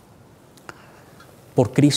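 A man speaks loudly into a microphone in an echoing hall.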